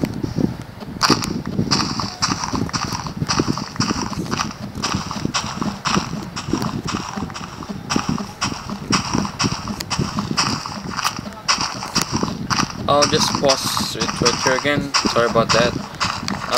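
Dirt crunches in quick repeated scrapes as it is dug away.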